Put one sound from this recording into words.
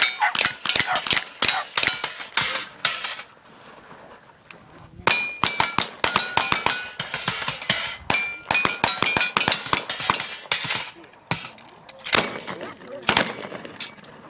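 A gun fires shot after shot in quick bursts outdoors.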